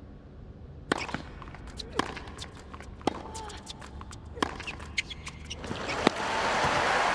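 Tennis rackets strike a ball back and forth on a hard court.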